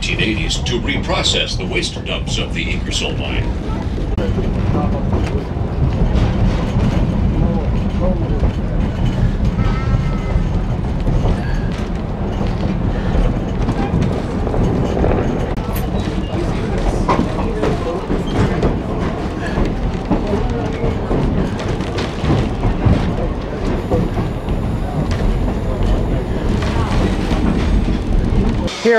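A train rumbles steadily along its track.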